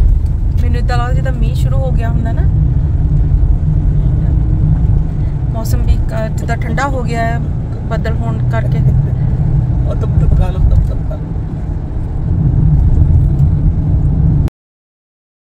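A car drives along an asphalt road, with tyre and engine rumble heard from inside the cabin.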